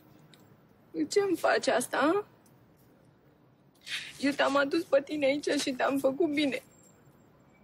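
A young woman speaks in a tearful, shaky voice close by.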